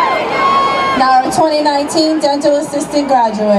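A woman reads out names over a loudspeaker.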